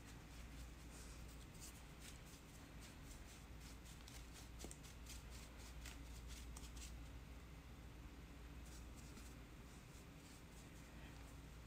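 A tool scrapes softly against dry clay.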